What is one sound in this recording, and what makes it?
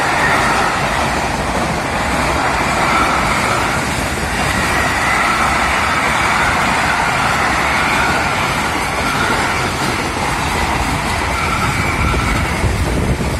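A long freight train rumbles and rattles steadily along the tracks.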